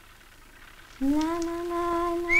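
A young woman sings a long, steady note nearby.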